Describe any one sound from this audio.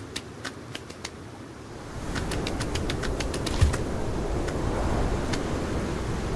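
Small stones clack as they are picked up one after another.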